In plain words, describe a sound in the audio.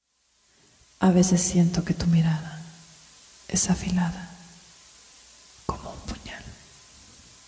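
A young woman speaks quietly and closely, in short halting phrases.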